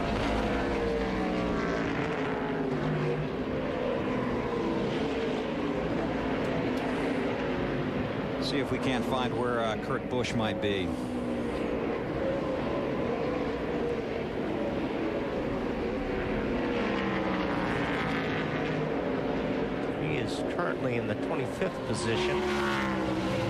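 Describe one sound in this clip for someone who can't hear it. Race car engines roar loudly as the cars speed past, their pitch rising and falling.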